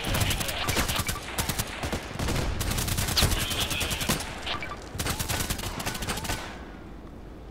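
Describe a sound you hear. Rapid automatic gunfire rattles in bursts.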